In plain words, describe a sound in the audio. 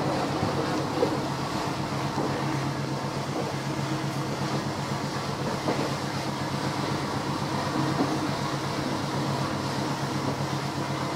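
A GE U18C diesel-electric locomotive idles with a steady low engine hum.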